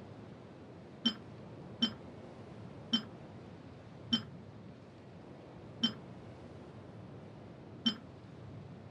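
A short bright menu click chimes several times.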